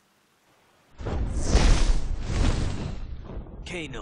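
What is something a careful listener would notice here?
Flames burst with a loud whoosh.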